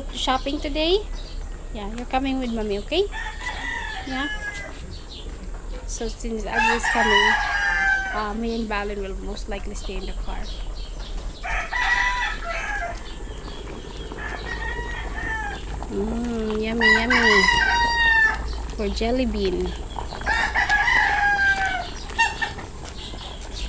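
A young woman talks calmly close by.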